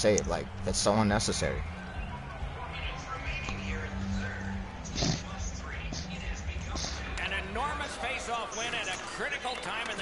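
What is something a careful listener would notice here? Skates scrape across ice.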